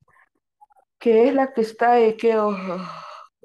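A woman speaks clearly and slowly over an online call.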